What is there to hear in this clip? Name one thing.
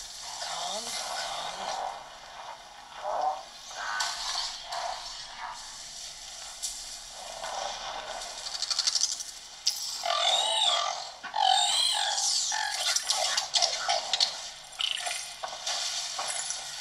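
Game music and sound effects play from a handheld console's small speakers.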